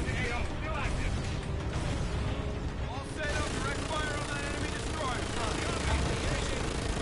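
A spacecraft engine rumbles low and steady.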